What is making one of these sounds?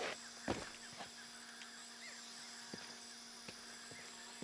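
Footsteps crunch on dirt and leaves.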